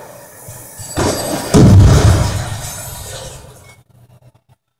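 A loud explosion booms from a television speaker and rumbles away.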